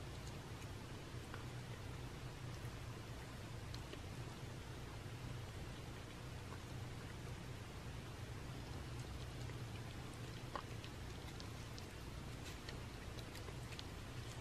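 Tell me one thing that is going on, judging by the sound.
A cat licks and laps with soft wet smacks close by.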